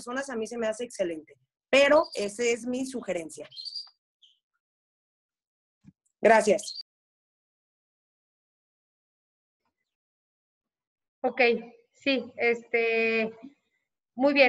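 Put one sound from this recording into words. A woman speaks with animation over an online call, with pauses between phrases.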